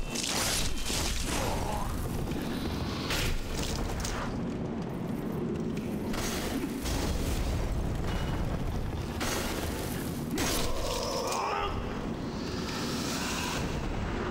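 Swords clang and strike in a fight.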